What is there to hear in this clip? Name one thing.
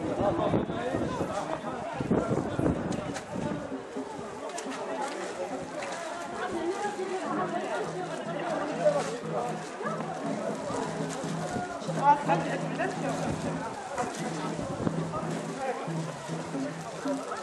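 Men and women talk outdoors at a distance.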